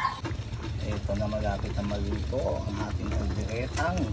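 A pot of stew bubbles and simmers.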